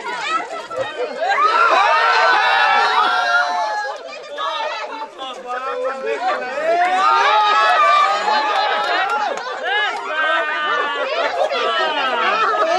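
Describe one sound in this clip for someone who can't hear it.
Several women shout and laugh loudly close by.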